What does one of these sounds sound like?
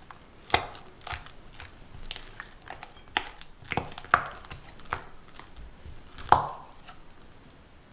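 A spatula scrapes and taps against a glass bowl.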